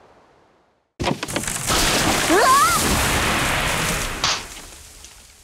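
A young woman screams loudly.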